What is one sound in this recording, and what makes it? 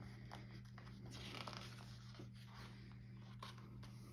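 Paper pages rustle as a book page is turned.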